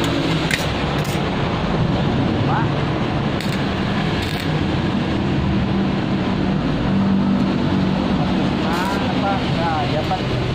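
An arc welder crackles and sizzles in short bursts.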